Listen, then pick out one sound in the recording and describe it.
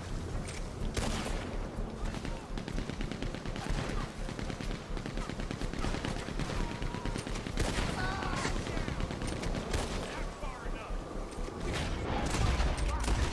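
Gunshots crack and echo repeatedly.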